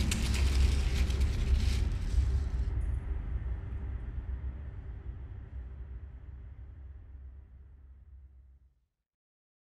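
Dry leaves rustle and crackle under a hand.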